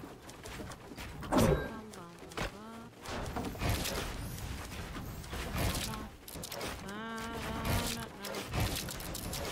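Building pieces snap into place with quick, sharp clacks.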